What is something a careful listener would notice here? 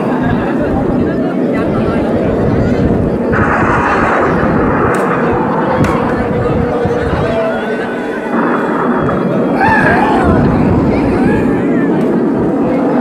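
A crowd of children and young people shout and cheer outdoors.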